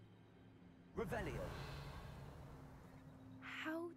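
A magic spell is cast with a bright whooshing burst that slowly fades.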